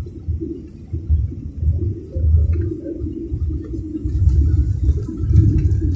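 An airliner's wheels thump onto the runway.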